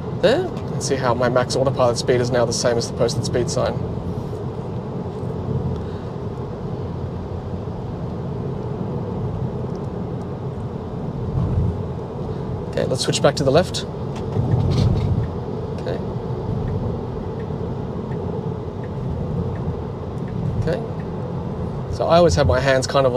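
Tyres hum and rumble steadily on a highway inside a moving car.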